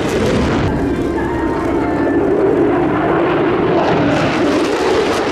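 An F-35 fighter jet roars overhead with its afterburner lit.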